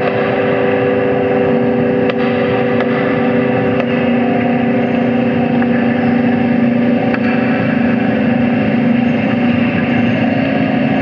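Electronic synthesizer tones drone steadily and loudly.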